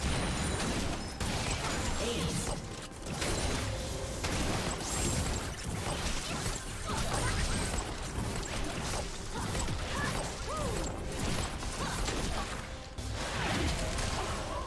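Game spell effects whoosh, zap and clash over and over.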